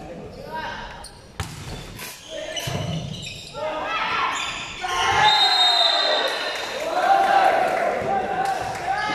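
Young women cheer and shout loudly in an echoing hall.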